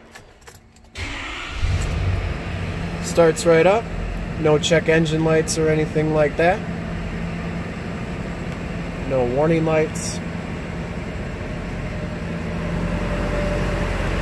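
An engine starts and idles with a steady low rumble.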